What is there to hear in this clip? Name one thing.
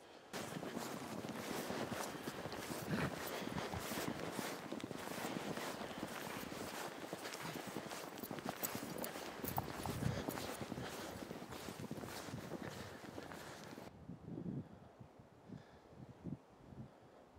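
A dog bounds through deep snow, paws crunching.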